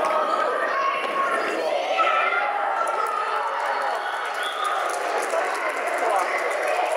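Children shout and call out across a large echoing hall.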